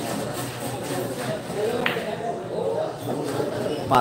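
A cue stick strikes a ball with a sharp click.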